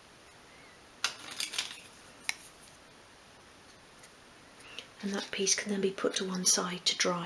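Wooden clothespins click and tap against each other.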